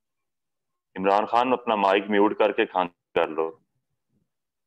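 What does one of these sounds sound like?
A young man speaks calmly, heard as if through an online call.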